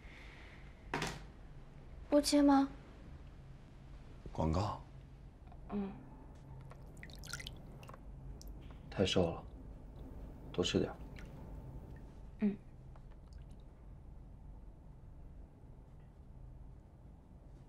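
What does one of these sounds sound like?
Water splashes softly in a basin.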